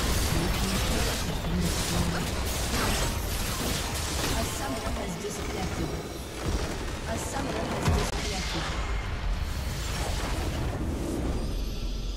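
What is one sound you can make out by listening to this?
Game battle effects blast and crackle loudly.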